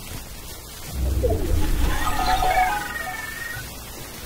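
A vending machine whirs and chimes with a bright jingle.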